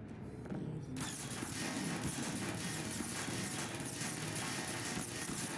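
A harsh, crackling hiss starts suddenly and goes on steadily.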